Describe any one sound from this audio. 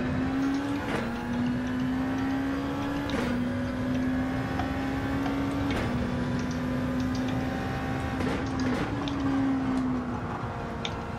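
A racing car engine drones steadily, rising in pitch and dropping briefly at each gear change.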